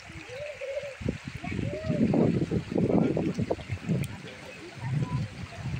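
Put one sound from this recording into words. Water splashes and gurgles around someone floating in a river.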